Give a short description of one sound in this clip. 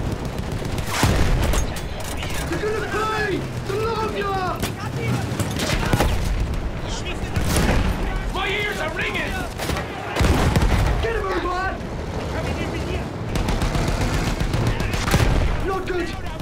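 Explosions boom nearby, now and then.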